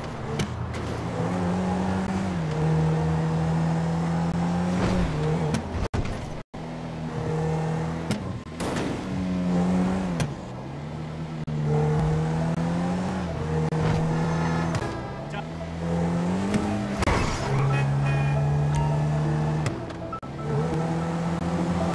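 A car engine revs up and drops as gears change, rising and falling in pitch.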